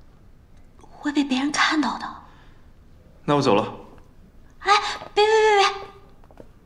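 A young woman speaks in a lively voice.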